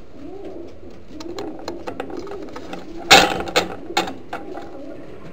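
A pigeon flaps its wings close by.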